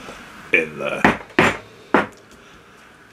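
Small taps knock on a table.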